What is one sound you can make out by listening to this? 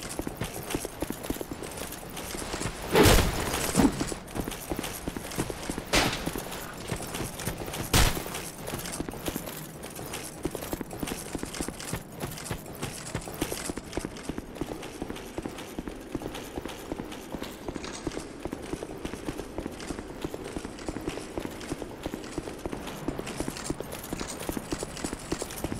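Armoured footsteps run on stone and leaf litter.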